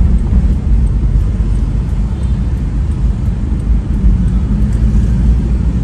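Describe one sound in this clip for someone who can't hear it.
Traffic rumbles along a street outdoors.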